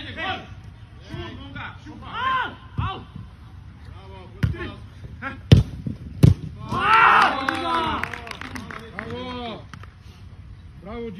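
Men shout to each other outdoors on a sports field.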